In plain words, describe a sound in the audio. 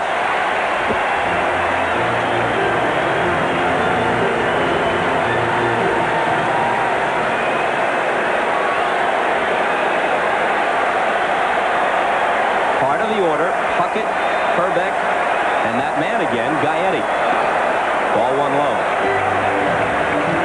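A large crowd murmurs steadily in a big stadium.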